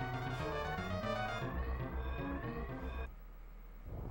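Game music plays with a bright, tinkling melody.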